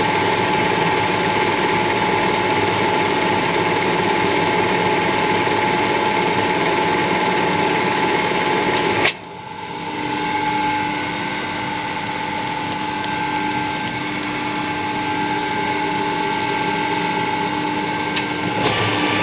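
A metal lathe spins with a steady, loud mechanical whirr.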